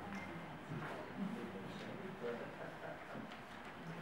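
Paper rustles as a boy handles a sheet.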